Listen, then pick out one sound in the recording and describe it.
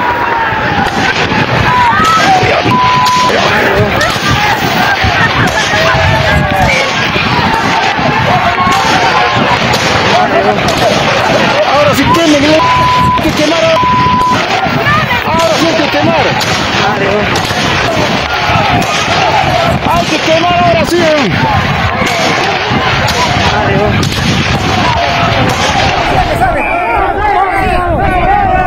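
A crowd of men and women shouts and calls out outdoors, heard from a short distance.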